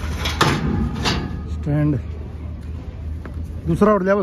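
Metal clanks as a ramp is handled.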